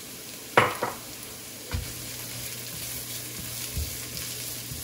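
A spatula scrapes and taps against a frying pan.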